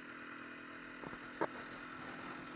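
Branches knock sharply against a snowmobile.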